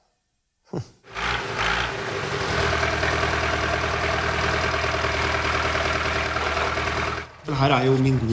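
A tractor engine idles with a steady rumble.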